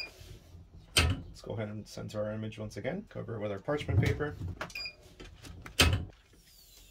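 A heat press lid clunks shut.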